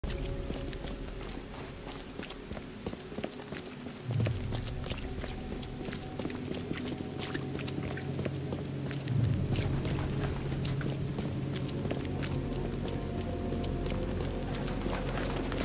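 Footsteps tap on wet pavement at a steady pace.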